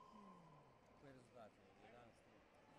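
A man calls out sharply nearby in an echoing hall.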